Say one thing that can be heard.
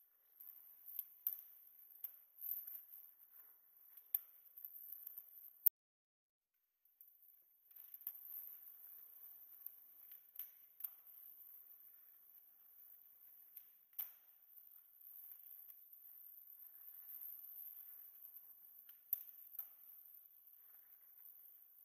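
Skateboard wheels roll on concrete.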